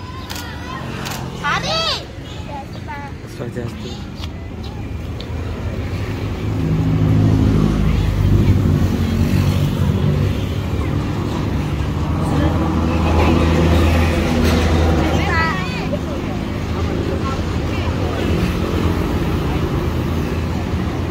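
Young girls chatter and laugh close by.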